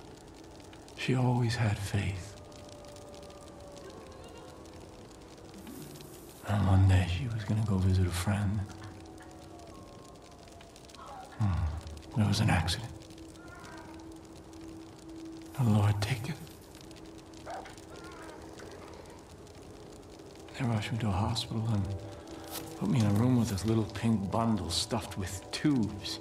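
A man speaks slowly and softly, in short phrases with pauses.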